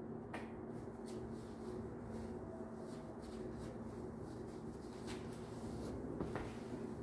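A cloth rubs briskly against a metal bike frame.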